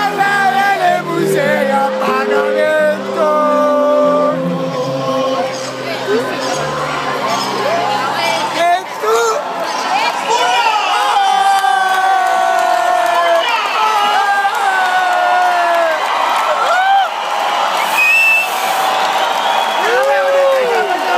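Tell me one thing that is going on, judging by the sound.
Live band music plays loudly over a large outdoor sound system.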